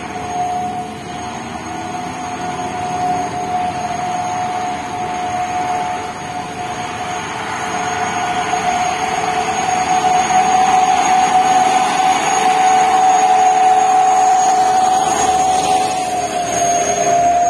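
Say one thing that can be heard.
Tyres hiss on the wet road.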